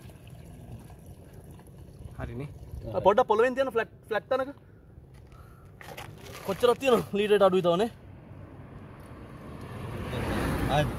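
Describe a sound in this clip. Liquid pours and splashes into a plastic jug.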